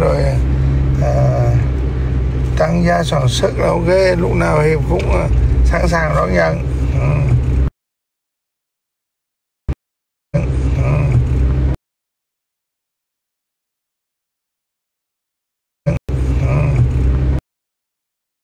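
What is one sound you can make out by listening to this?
A middle-aged man sings close by, with feeling.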